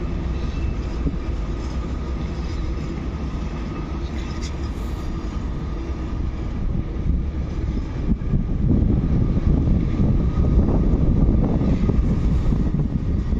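A freight train rumbles and clatters steadily along the tracks nearby, growing louder.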